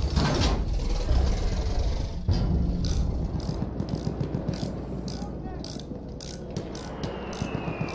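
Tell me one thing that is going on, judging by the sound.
Tank tracks clank and rattle.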